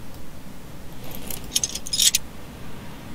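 Metal parts clank and rattle as they are pulled loose.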